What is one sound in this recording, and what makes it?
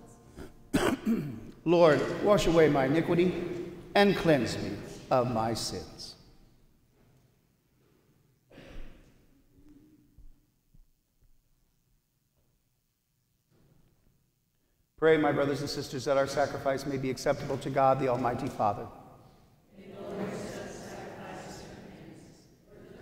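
An elderly man speaks calmly and clearly into a microphone in a room with a slight echo.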